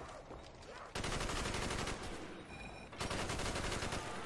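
An assault rifle fires rapid bursts.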